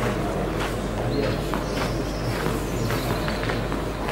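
A tennis ball bounces on the court before a serve.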